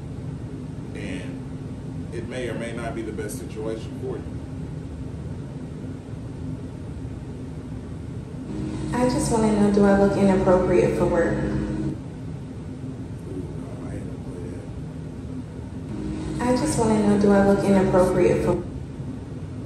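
A man speaks close into a microphone.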